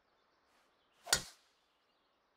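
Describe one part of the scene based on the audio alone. A golf club strikes a ball with a sharp thwack.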